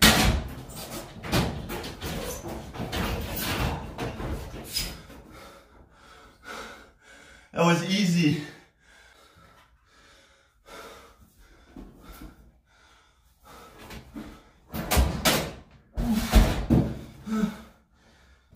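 Clothes rustle and thump as a man pulls them out of a dryer.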